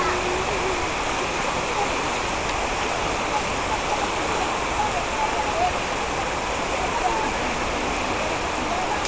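Several men and women talk at a distance outdoors.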